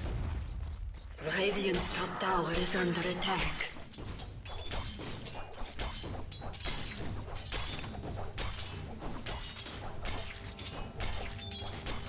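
Blows land rapidly in a fight.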